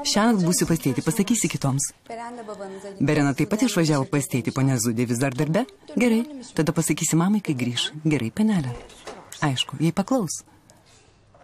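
A young woman speaks sharply and with agitation close by.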